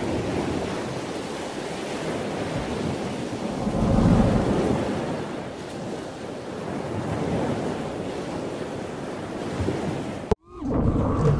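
Ocean waves wash onto a beach.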